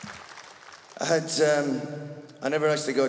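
A man speaks through loudspeakers in a big echoing hall.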